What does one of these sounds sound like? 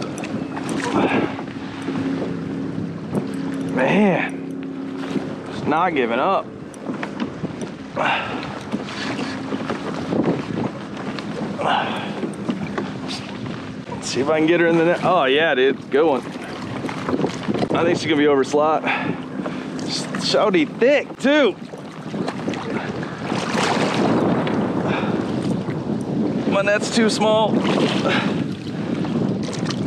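Water laps against the hull of a small boat.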